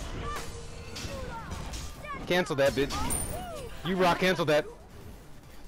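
A game character cries out while attacking.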